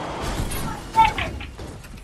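Gunshots crack in a game.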